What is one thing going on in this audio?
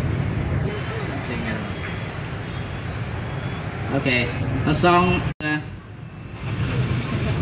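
A young man speaks through a microphone and loudspeaker.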